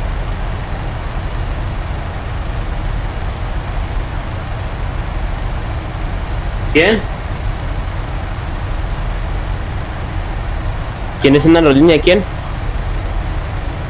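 A jet engine drones steadily inside a cockpit.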